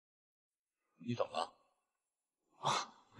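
A second man answers in a low, calm voice.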